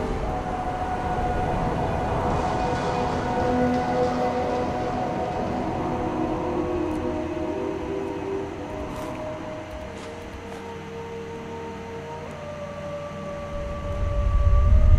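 Footsteps crunch over rubble and gravel.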